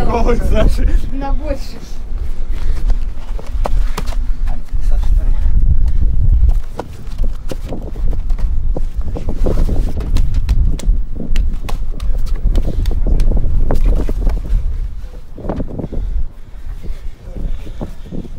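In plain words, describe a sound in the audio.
Bodies thump and scuffle on a padded mat.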